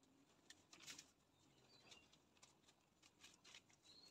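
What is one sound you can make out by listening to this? A plastic sheet rustles as hands smooth it.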